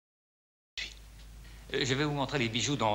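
An elderly man speaks in a quiet room.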